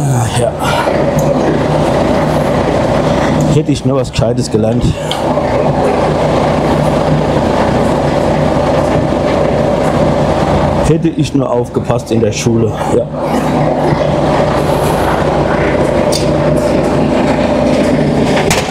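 A truck engine idles steadily in a large echoing hall.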